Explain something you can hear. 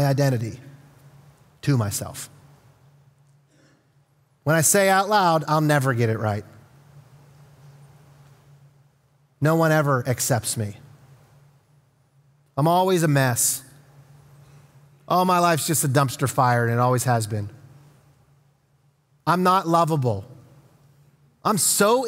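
A man speaks slowly and earnestly into a microphone, with long pauses.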